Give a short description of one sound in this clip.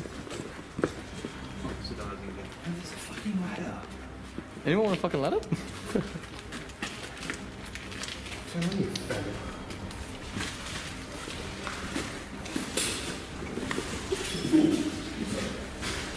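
Footsteps scuff on a hard floor.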